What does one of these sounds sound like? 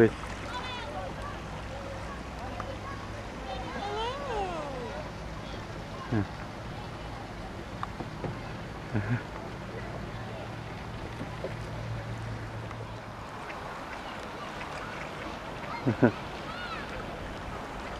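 A paddle splashes in calm water.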